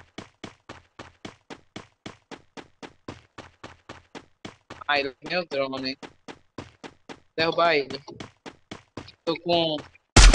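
Footsteps thud quickly and steadily on grass.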